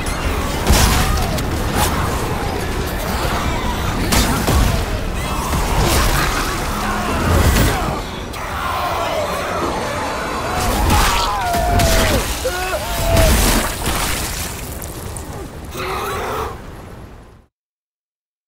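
A monstrous creature snarls and shrieks.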